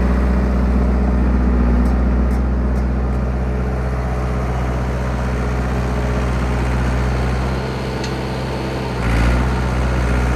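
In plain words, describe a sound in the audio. A diesel bulldozer engine rumbles steadily close by.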